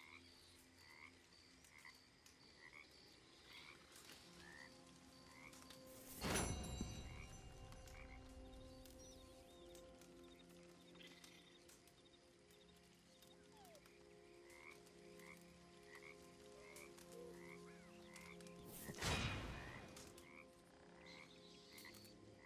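A campfire crackles and pops softly outdoors.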